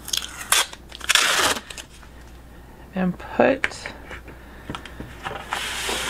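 Sticky tape is pulled off a roll with a ripping sound.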